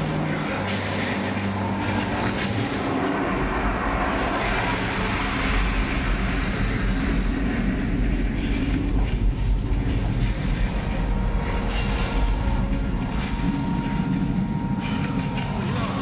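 Wind howls in a blizzard.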